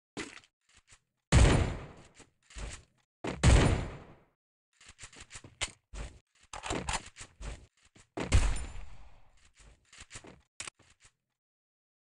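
Gunshots ring out in short bursts, each followed by a brief echo.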